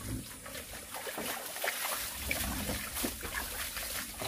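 Water splashes as it is poured from a cup onto a wooden floor.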